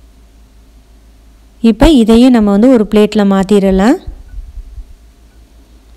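A spatula scrapes against a pan.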